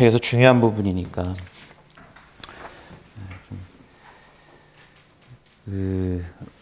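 A man speaks close by, reading out in a calm voice with pauses.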